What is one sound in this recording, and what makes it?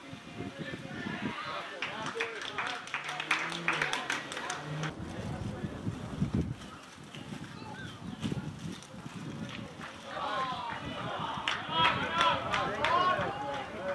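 Young men call out to each other across an open field in the distance.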